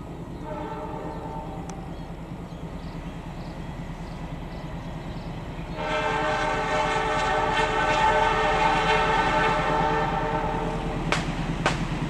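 A train horn blows loudly.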